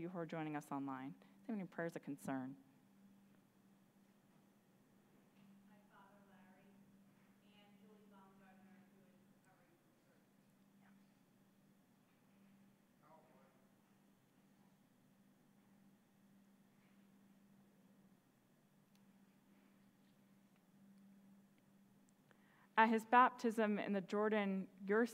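A woman reads out through a microphone.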